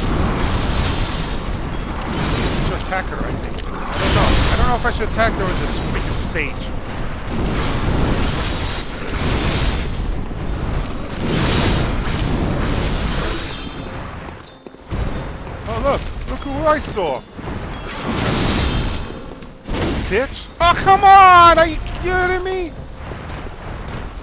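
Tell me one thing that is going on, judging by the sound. A blade swishes through the air in quick swings.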